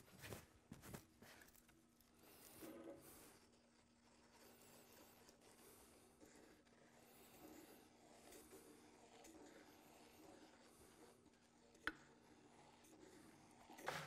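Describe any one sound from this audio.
Wooden sticks knock softly against a metal pot.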